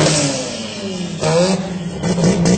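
Tyres screech as a drag-racing car does a burnout.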